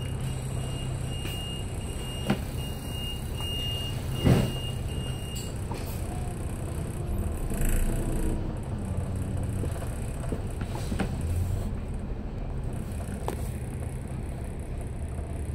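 Cars drive past close by.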